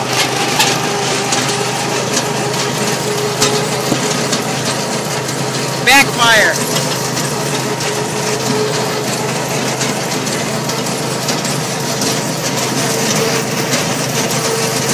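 A small lawn tractor engine hums steadily close by.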